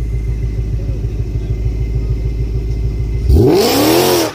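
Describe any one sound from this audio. A car engine idles with a deep, loud rumble.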